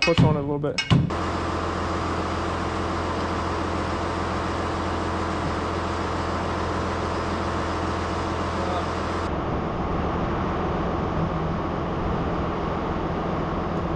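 A tractor engine idles steadily.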